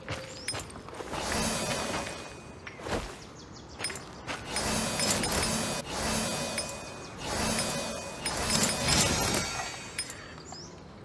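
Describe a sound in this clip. Footsteps tread on grass at a steady walking pace.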